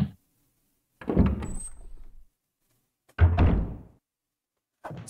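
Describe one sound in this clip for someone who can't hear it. A heavy wooden door slowly creaks open.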